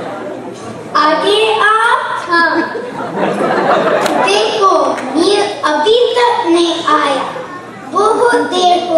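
A young girl speaks into a microphone, heard over loudspeakers in a large echoing hall.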